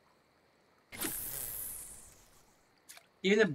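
A fishing line whizzes out as a rod casts.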